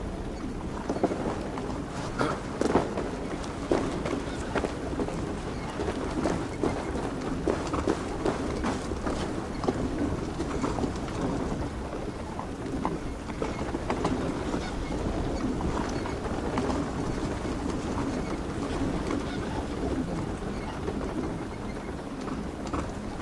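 Footsteps scuff on rocky ground at a steady walking pace.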